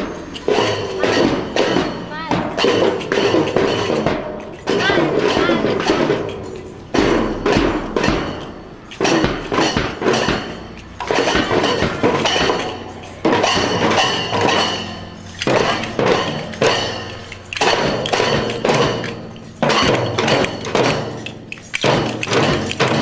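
Children beat snare drums and a bass drum in a marching rhythm.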